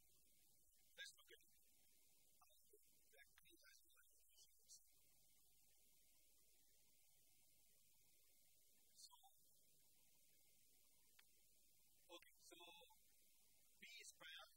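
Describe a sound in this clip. A man speaks calmly to an audience.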